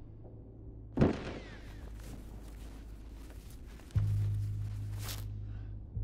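Bodies thud and scuffle on a hard floor.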